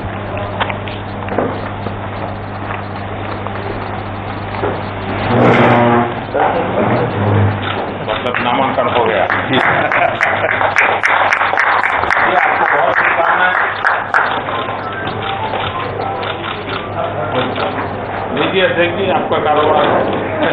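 A crowd of men murmurs and chatters in a room.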